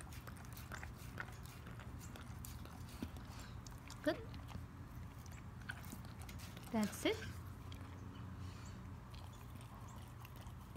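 A dog laps water noisily from a metal bowl.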